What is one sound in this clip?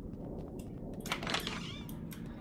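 A door opens with a creak.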